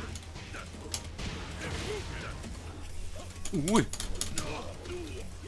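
Punches and kicks land with sharp smacks in a fighting game.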